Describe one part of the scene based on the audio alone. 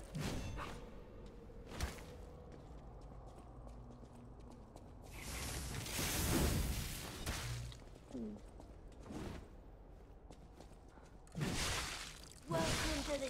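Swords clash and slash in a game fight.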